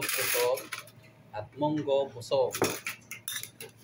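Dishes and cutlery clink.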